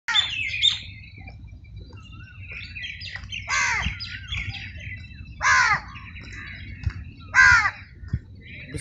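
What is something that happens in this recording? Sheep bleat now and then.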